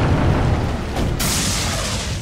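A rocket launcher fires with a loud whoosh.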